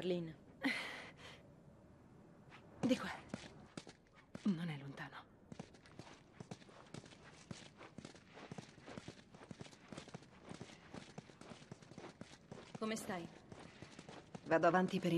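Footsteps tread slowly on a hard floor.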